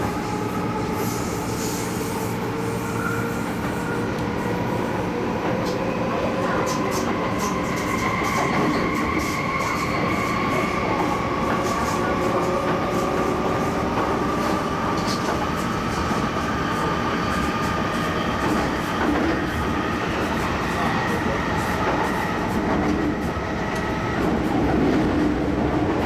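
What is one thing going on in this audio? A train's motor whines, its pitch slowly changing.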